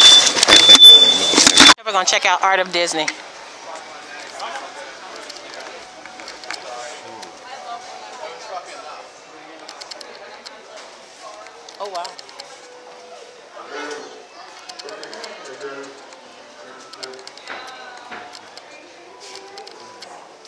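Several adults chatter in a low murmur nearby.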